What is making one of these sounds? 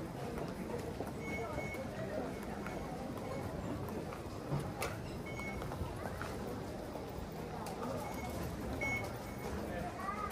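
Ticket gates beep in short, high tones.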